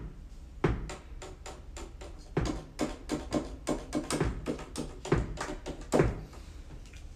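Piano notes play in a quick run.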